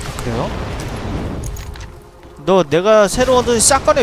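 A gun clicks as it is swapped.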